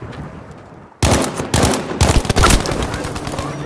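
A submachine gun fires in rapid bursts.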